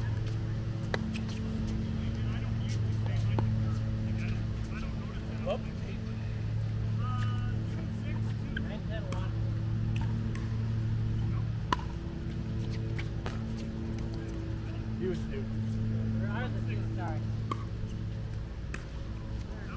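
Paddles pop sharply against a plastic ball in a rally.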